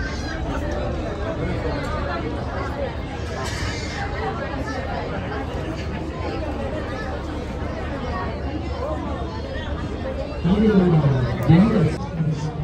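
A crowd murmurs and chatters in the background outdoors.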